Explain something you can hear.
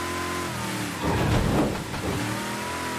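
A car engine revs up loudly and roars.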